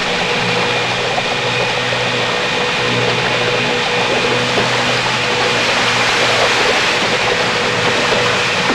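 A motorboat engine roars at speed.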